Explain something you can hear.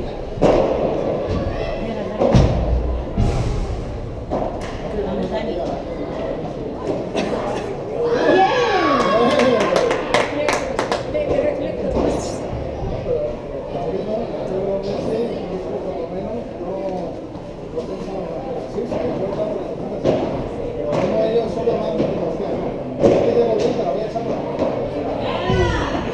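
Shoes squeak on the court.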